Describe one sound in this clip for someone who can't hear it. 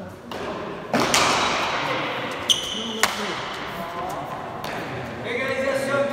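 A hard ball smacks against walls with sharp cracks that echo through a large hall.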